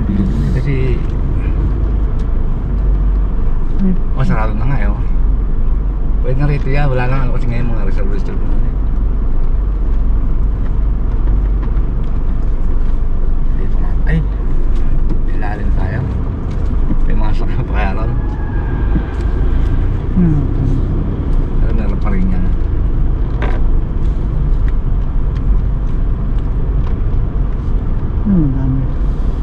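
A car engine hums steadily as the car drives slowly, its sound echoing in a large enclosed space.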